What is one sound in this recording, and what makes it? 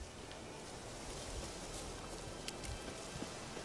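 Footsteps crunch softly on grass and dirt.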